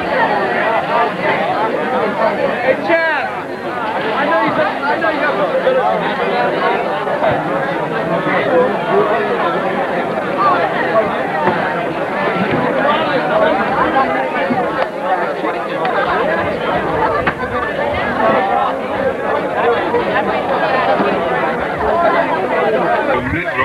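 A crowd of men and women talk loudly over one another nearby.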